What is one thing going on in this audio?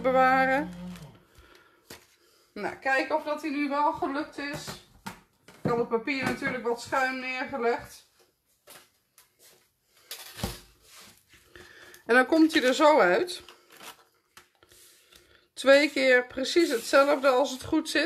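Paper rustles and slides as it is handled on a hard surface.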